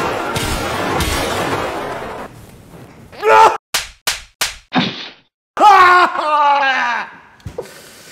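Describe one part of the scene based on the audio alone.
A young man shouts excitedly into a headset microphone.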